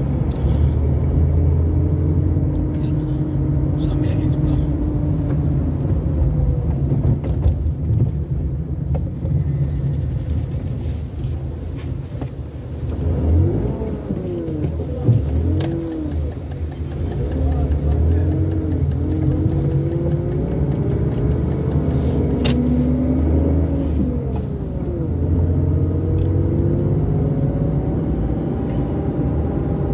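Tyres roll on the road with a steady rumble.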